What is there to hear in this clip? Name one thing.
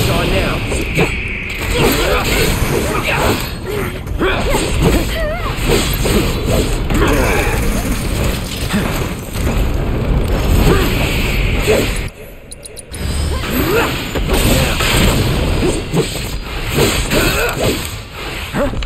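Sword blows strike and clang in quick succession.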